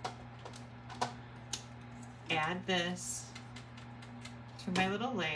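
Paper rustles and taps on a tabletop.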